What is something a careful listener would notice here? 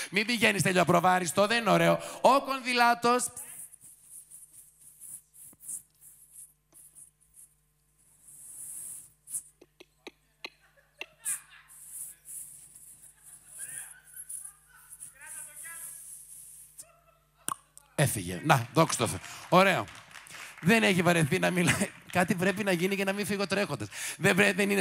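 A middle-aged man sings loudly into a microphone, softening to a quiet murmur in the middle.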